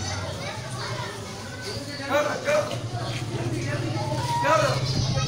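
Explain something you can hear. Men shout nearby outdoors.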